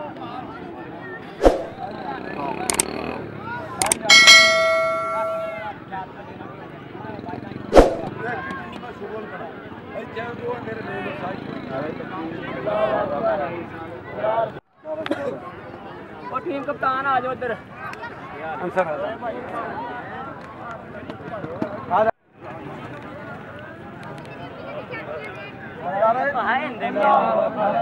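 A crowd of young men talks and shouts outdoors.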